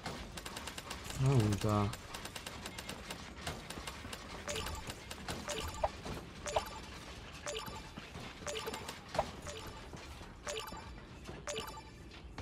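Game building pieces snap into place with quick, sharp clicks.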